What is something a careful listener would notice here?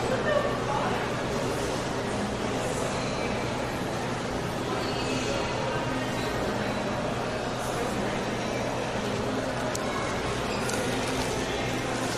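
A crowd murmurs faintly in a large echoing hall.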